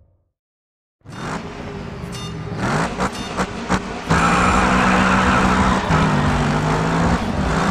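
A race car engine revs loudly and roars as it pulls away.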